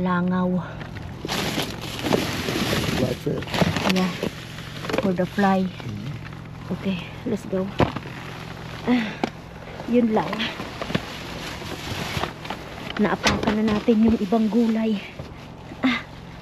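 Plastic bags and cardboard rustle and crinkle as a hand rummages through rubbish.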